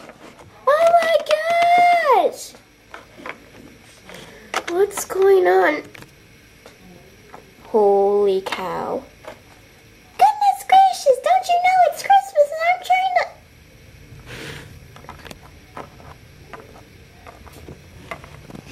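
Small plastic toys tap and clatter on a hard surface.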